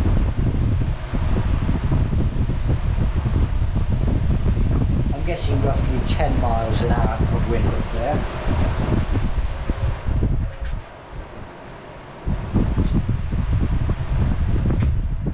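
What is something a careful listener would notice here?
A fan whirs and blows air with a steady rushing roar.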